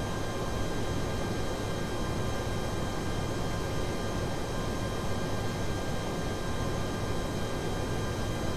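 Jet engines hum steadily with a rushing roar of air.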